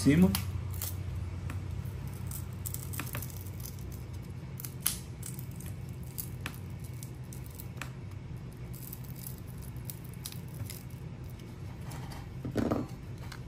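Small plastic parts click and tap as hands handle them.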